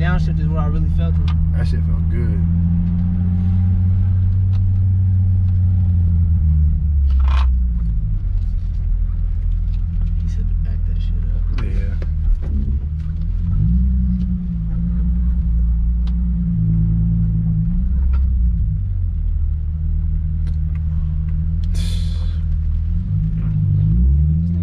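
A car engine rumbles deeply from inside the cabin, rising and falling as gears change.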